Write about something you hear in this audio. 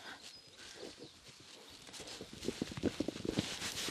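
Hooves thud softly on sand.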